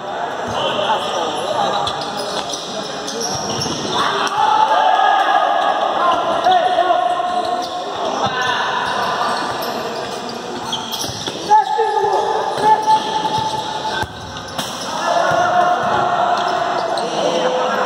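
Men shout to each other across an echoing hall.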